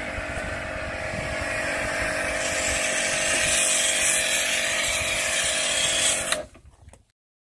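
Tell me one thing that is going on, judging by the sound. A pressure washer motor hums steadily.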